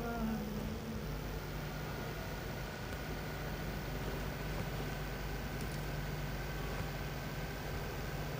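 A car engine hums steadily as the vehicle drives along a road.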